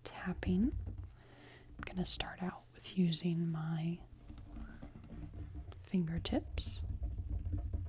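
A woman speaks softly close to a microphone.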